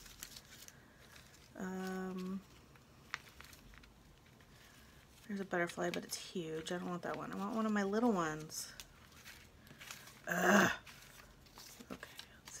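Paper cutouts rustle softly as hands sort through them.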